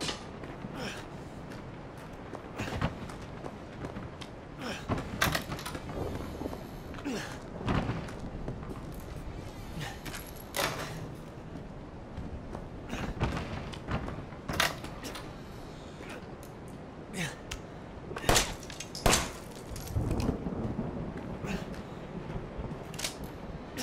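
Footsteps creak slowly across old wooden floorboards.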